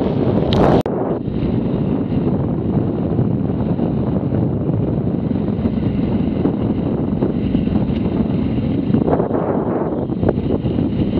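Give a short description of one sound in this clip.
Tyres crunch and rumble over a rough dirt track.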